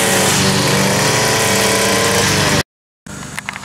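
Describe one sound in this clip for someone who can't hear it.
A string trimmer engine runs loudly outdoors.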